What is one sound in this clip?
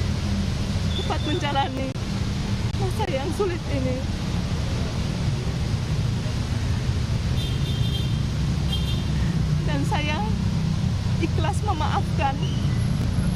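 A woman speaks briefly and softly close to a microphone.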